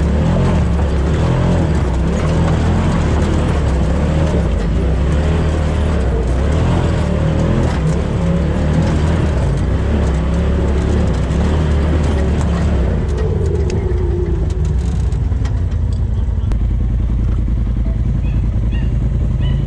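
Tyres crunch and bump over loose rocks.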